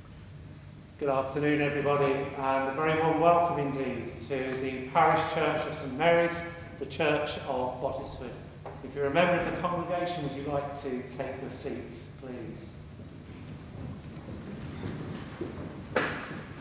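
An elderly man speaks calmly and clearly in a large echoing hall.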